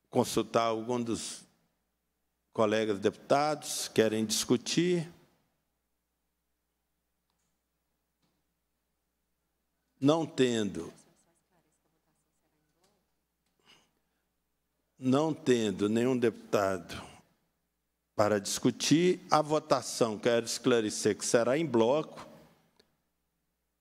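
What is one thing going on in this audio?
A middle-aged man speaks calmly into a microphone in bursts, with pauses between.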